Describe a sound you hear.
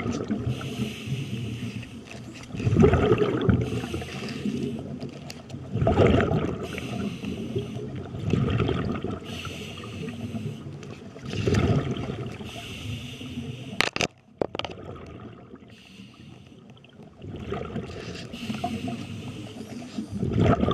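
Water rushes and churns close by underwater, in uneven surges.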